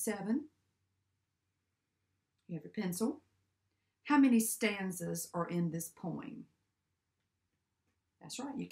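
A young woman speaks calmly and clearly, close by, with short pauses.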